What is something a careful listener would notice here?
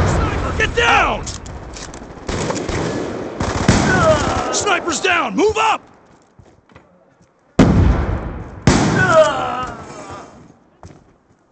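Rifle gunfire rattles in loud bursts.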